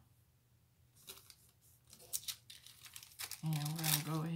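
Paper and plastic sheets rustle softly under fingers.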